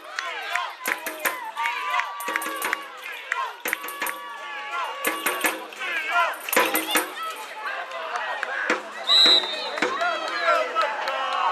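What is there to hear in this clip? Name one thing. Young boys shout and call out across an open field.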